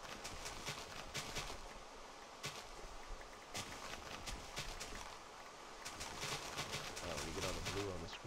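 Crunchy popping sounds repeat quickly as crops are broken.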